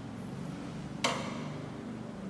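A metal connector clicks into place on a machine.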